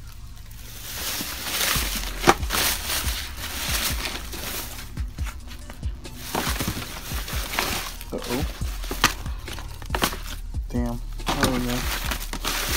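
Plastic bags rustle and crinkle as a hand digs through them.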